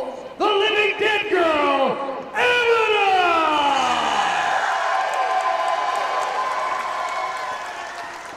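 A crowd cheers and murmurs in a large hall.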